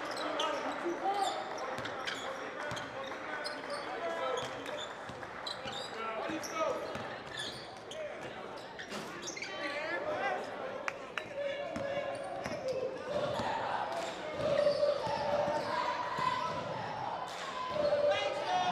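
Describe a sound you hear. A crowd chatters and cheers in an echoing gym.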